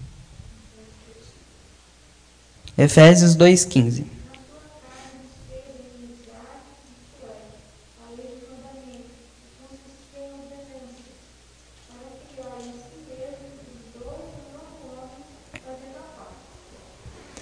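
A young man speaks calmly into a microphone, heard through loudspeakers in a room.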